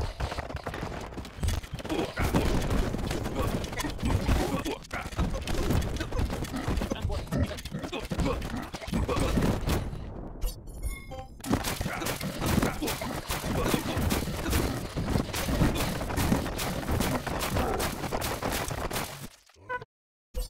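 Weapons clash and thud in a noisy battle.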